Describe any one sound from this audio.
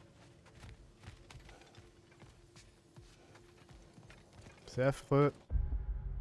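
Footsteps crunch softly on a frozen path.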